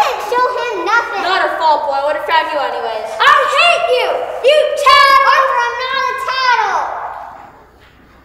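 A young girl sings in a large, echoing hall.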